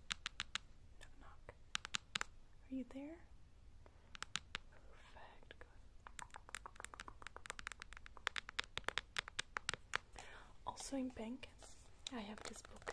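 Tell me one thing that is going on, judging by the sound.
A young woman whispers softly into a close microphone.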